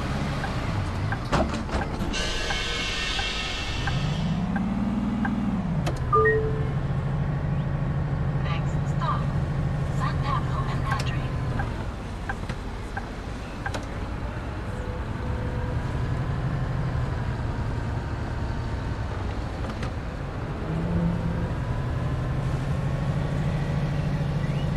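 A bus engine hums steadily and rises and falls with speed.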